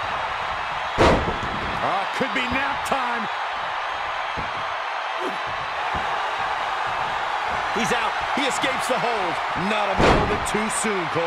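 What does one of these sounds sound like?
Heavy thuds land as wrestlers slam onto the mat.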